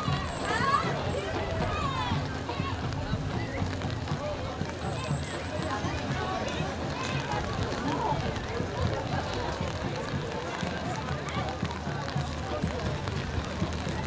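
A crowd of people chatters along the street outdoors.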